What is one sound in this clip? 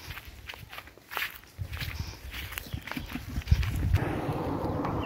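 Footsteps pad softly on grass.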